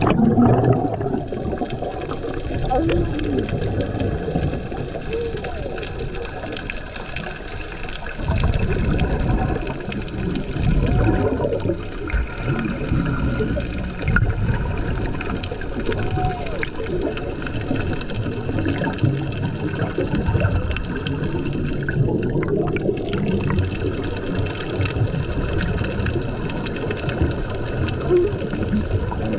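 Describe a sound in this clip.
Water rushes and rumbles around a diver underwater.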